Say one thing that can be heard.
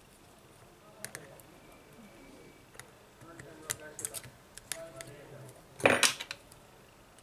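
A metal pick clicks and scrapes against a phone's frame.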